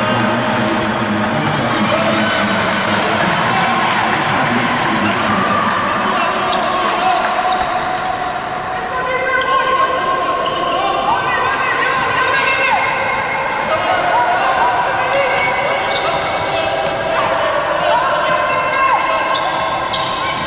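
A crowd cheers and murmurs in a large echoing hall.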